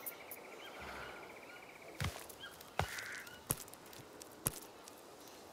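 A wooden crate knocks and clatters as it is handled.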